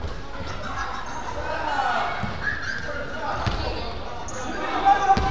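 Children shout and call out across a large echoing gym.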